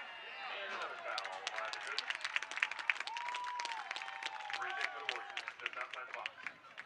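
Spectators clap their hands rapidly.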